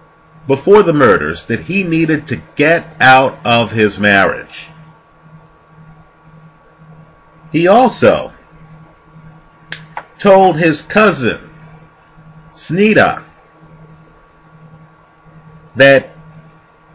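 A middle-aged man speaks close to the microphone with animation, in short bursts with pauses.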